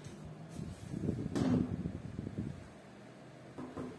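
A clear plastic cover is set down on a plastic tray with a light clack.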